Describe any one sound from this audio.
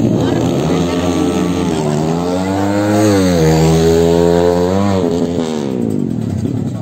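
A drag-racing motorcycle engine runs nearby.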